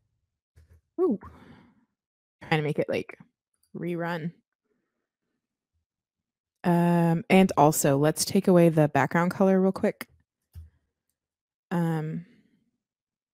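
A woman speaks close to a microphone, in short bursts with pauses.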